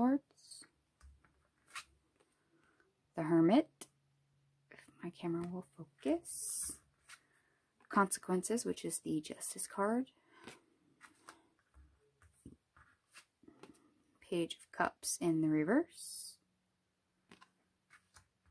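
Playing cards are picked up and slid softly across a table.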